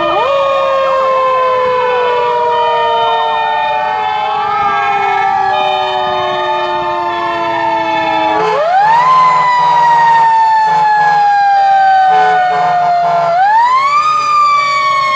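Several fire truck sirens wail close by, rising and falling in pitch.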